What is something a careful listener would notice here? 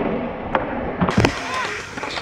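A skateboard lands with a sharp clack on concrete.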